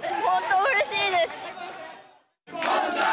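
A young woman speaks happily into a microphone, close by.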